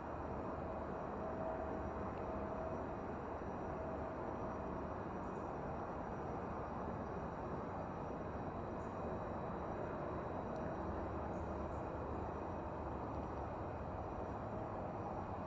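A train approaches slowly along the tracks with a steady low rumble.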